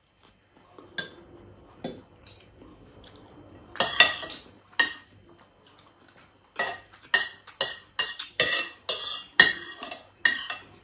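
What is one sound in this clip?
A spoon and fork clink against a plate.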